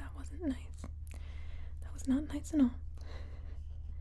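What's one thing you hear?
Fingernails tap lightly on paper.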